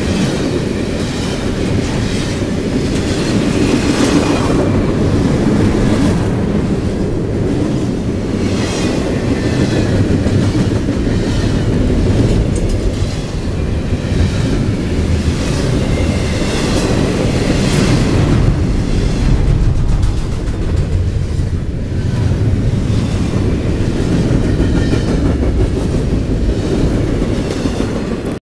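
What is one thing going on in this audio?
Train wheels clack and squeal over the rails.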